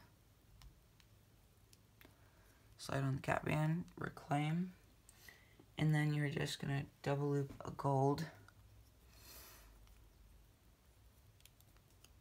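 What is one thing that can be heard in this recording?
Small metal clips click softly as they are handled.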